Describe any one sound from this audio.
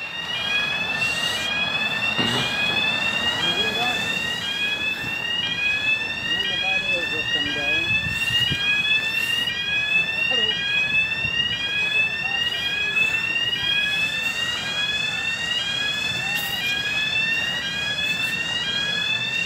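A crossing alarm sounds a rapid, repeating rising electronic tone.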